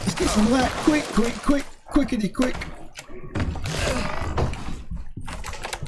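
Footsteps thud on wooden stairs and planks.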